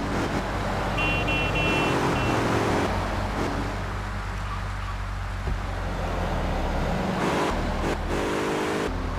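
A car engine hums steadily as it drives along.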